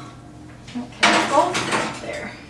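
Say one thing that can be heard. A tray scrapes on an oven rack.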